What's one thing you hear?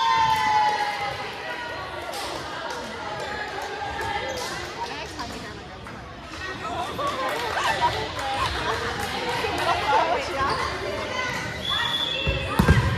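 Young girls call out and chatter in a large echoing gym.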